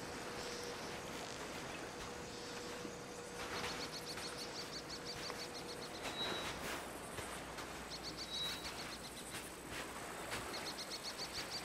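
Footsteps crunch on sand and grass.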